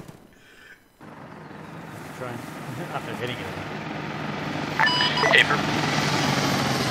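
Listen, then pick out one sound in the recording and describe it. A helicopter's rotor thumps and drones overhead.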